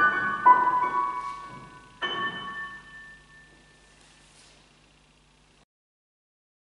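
A piano plays a few final notes that ring out and slowly fade.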